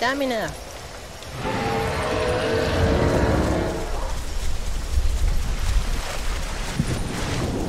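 A lizard's feet rustle softly through dry leaves.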